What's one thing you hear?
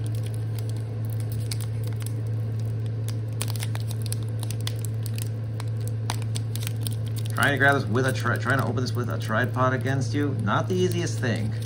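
A foil wrapper crinkles and tears.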